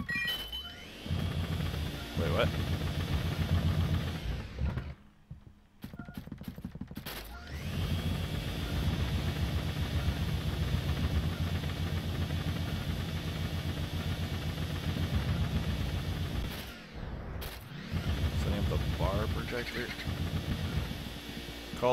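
A vacuum cleaner roars with a steady, pulsing hum.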